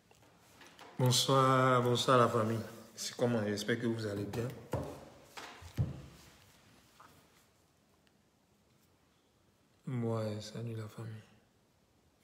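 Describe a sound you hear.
A man speaks close by with animation, in short bursts with pauses.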